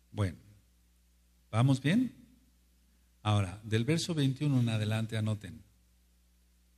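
An elderly man speaks slowly into a microphone in short bursts.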